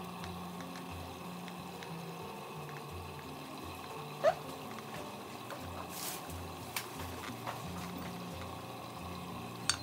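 Thick sauce pours from a metal pot.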